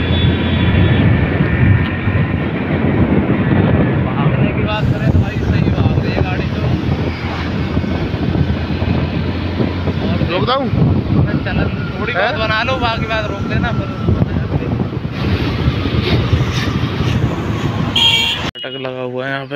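A motorcycle engine roars steadily while riding.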